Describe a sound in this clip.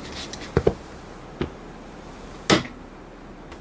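A wooden chair knocks and scrapes as a man sits down.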